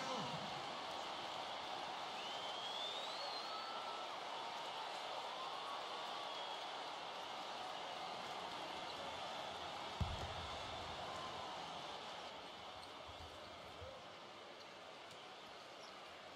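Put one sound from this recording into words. A large crowd murmurs and cheers steadily in a big echoing arena.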